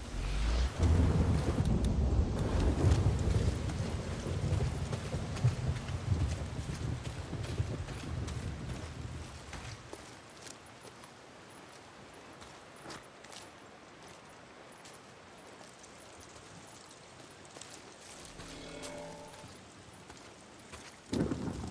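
Footsteps run quickly through grass and undergrowth.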